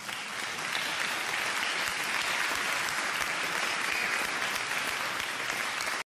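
Small bells jingle rapidly.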